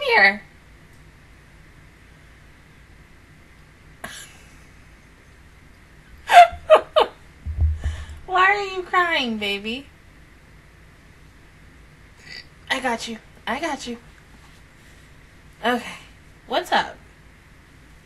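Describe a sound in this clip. A young woman talks and laughs with animation, close to a microphone.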